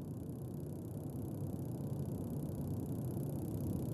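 A trials motorcycle engine revs.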